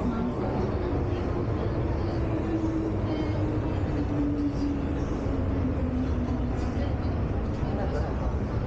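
Train brakes whine with a falling pitch as the train slows into a station.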